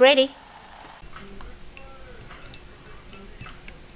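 Liquid pours and trickles into a bowl.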